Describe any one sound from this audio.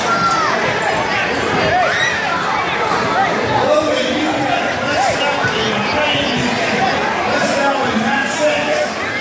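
A large crowd chatters and cheers loudly in an echoing hall.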